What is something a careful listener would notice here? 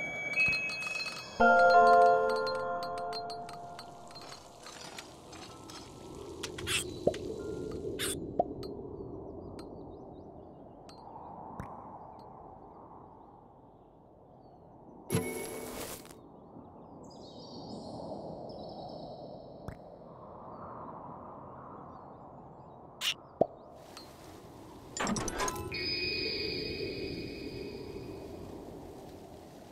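Earth and rock rumble softly in slow swells as ground shifts.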